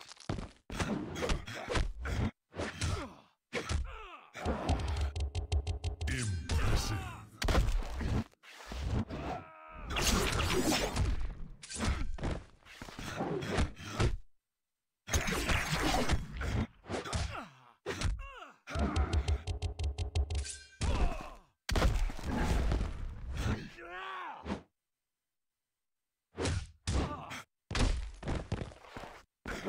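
Punches and kicks land with heavy, sharp thuds in quick bursts.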